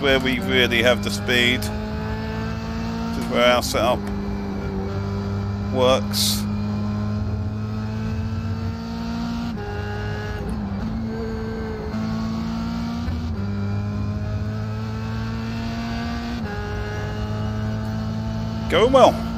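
A racing car engine drones loudly, climbing in pitch and dropping at each gear change.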